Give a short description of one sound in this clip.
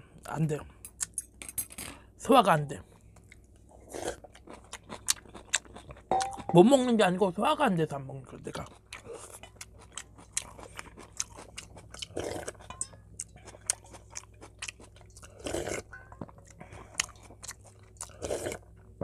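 A metal spoon clinks against a steel bowl.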